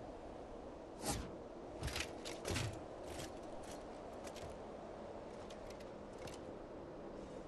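Short sharp clacks from a game character's moves sound in quick bursts.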